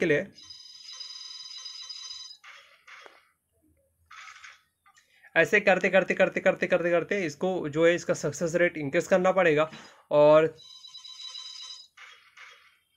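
A game's electronic chime rings steadily while a counter spins.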